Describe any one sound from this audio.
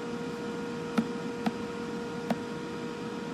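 A finger taps a small device's touch panel with short, sharp clicks.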